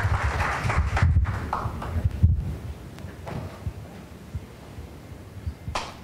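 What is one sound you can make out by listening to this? A man speaks through a microphone in a large hall.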